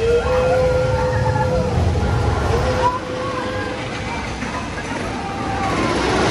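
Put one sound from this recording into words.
Steam hisses loudly from a jet.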